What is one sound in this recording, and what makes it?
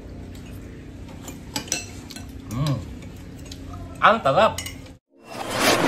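A man chews and smacks his lips while eating.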